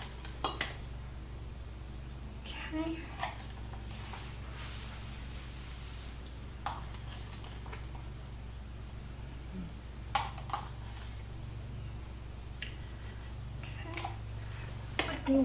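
Ingredients are spooned into a glass bowl with soft taps and clinks.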